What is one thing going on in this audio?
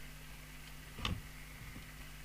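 A multimeter's rotary dial clicks as it is turned.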